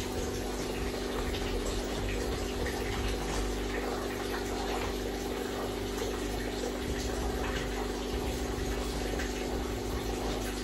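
Hands scrape and tap lightly on an oven door's glass.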